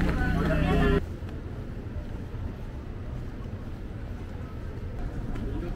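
A crowd chatters and shuffles along outdoors.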